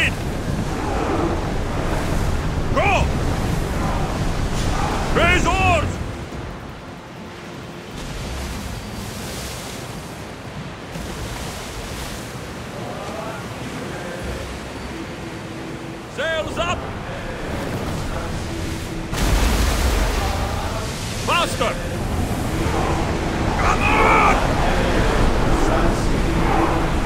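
Wind blows strongly over the sea.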